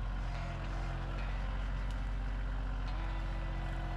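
A log thuds onto the ground.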